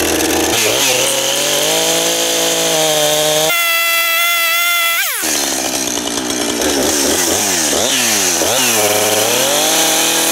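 A chainsaw engine revs up and down loudly outdoors.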